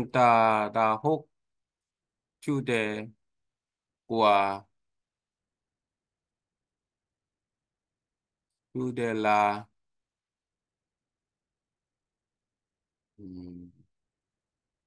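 A man speaks in short phrases into a microphone, with long pauses.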